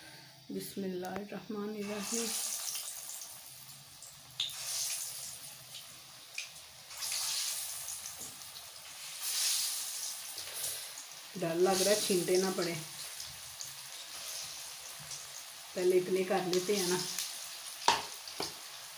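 Oil sizzles and crackles as dumplings fry.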